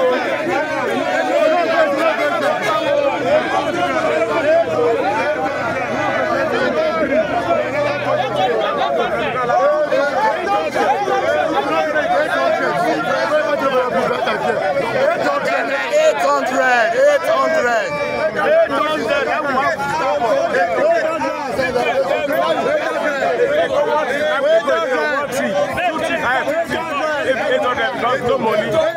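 A crowd of men shouts and talks over one another nearby, outdoors.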